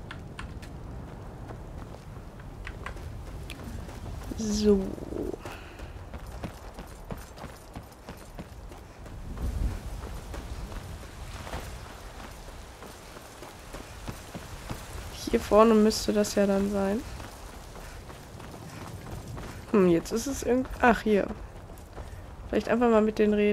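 Footsteps tread on stone paths and wooden planks.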